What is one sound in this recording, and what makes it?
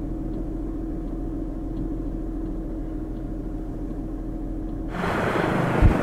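A helicopter engine hums steadily nearby.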